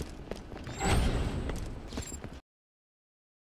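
A gun fires in a game with a sharp burst.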